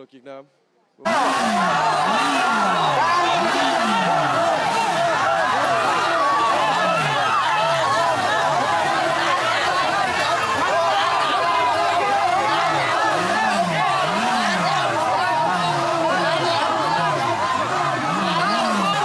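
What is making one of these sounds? A crowd cheers and chants loudly outdoors.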